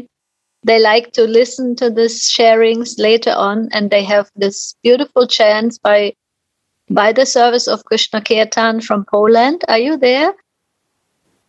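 A middle-aged woman speaks with animation close to the microphone over an online call.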